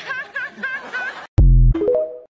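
An older woman laughs.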